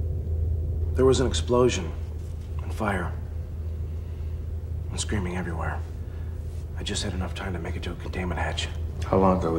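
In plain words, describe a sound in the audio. A woman speaks quietly and closely.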